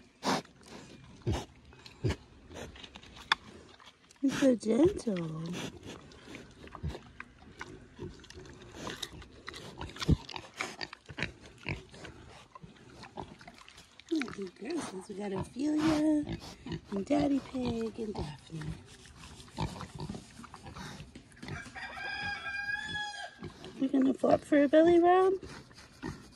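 A pig chews food noisily.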